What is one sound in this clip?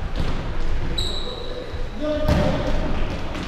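Sneakers squeak sharply on a wooden floor in a large echoing hall.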